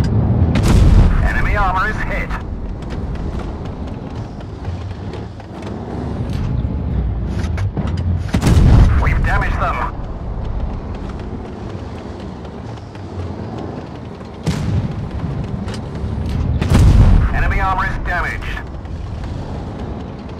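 A heavy tank's engine rumbles.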